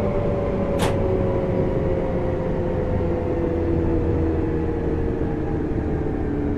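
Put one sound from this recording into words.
Train wheels rumble steadily over the rails.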